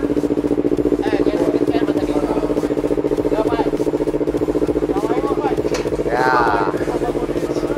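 Young men talk nearby.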